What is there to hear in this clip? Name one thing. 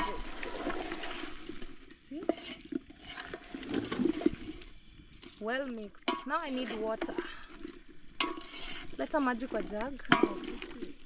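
A wooden spoon stirs and scrapes against a metal pot.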